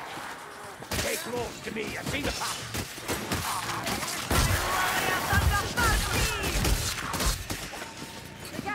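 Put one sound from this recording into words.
Blades slash and thud into flesh in a frantic melee.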